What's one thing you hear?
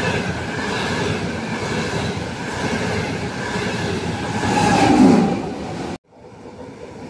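A high-speed train rushes past with a loud, rushing roar.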